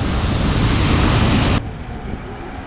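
Wind roars loudly while riding at speed.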